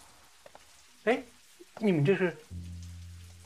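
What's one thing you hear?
An older man asks a question sharply.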